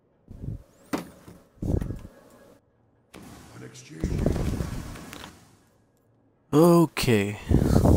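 Soft menu clicks and chimes sound as selections change.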